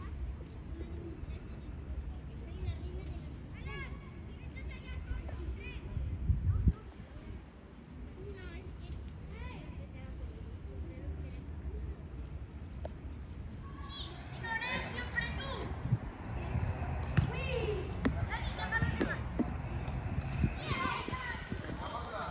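Children shout and call out excitedly nearby.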